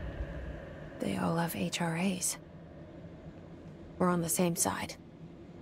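A young woman speaks quietly and calmly close by.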